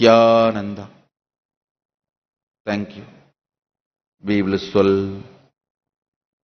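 A man chants briefly in a deep voice through a microphone.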